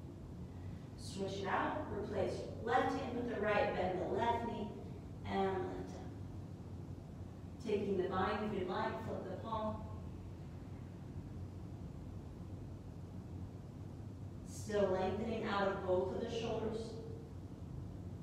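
A woman speaks calmly, giving slow instructions close to a microphone.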